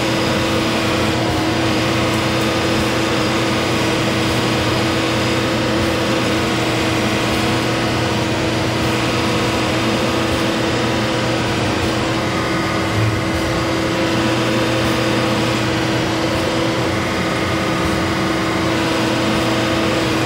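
A semi truck's diesel engine runs as the truck drives slowly.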